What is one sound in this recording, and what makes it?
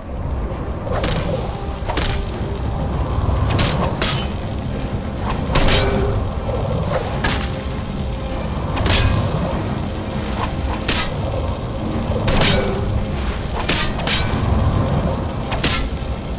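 Metal weapons clang sharply against armour again and again.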